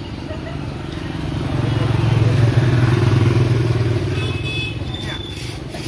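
A motor scooter passes by.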